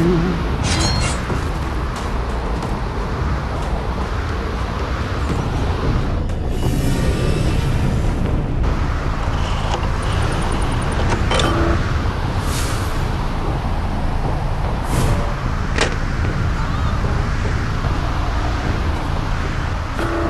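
Footsteps tread steadily over soft ground.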